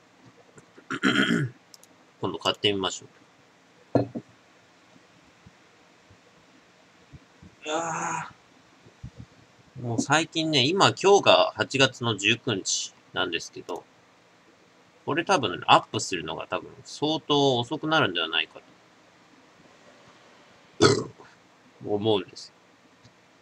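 A young man speaks close by in short bursts.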